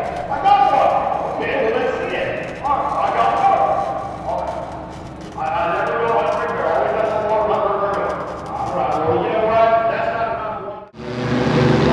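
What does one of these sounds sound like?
A young man talks up close.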